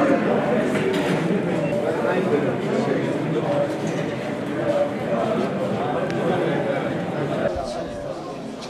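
A crowd of people chatters in a busy indoor space.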